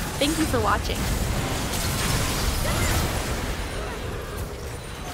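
Magic spells crackle and burst in a busy fantasy battle.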